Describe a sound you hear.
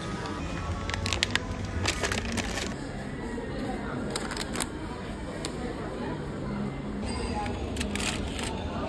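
Boxes rattle as they drop into a plastic basket.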